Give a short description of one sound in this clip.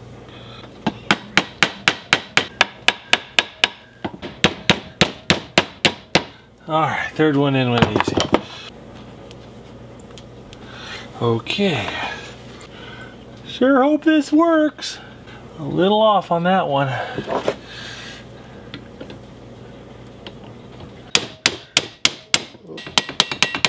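A hammer taps sharply and rapidly on metal.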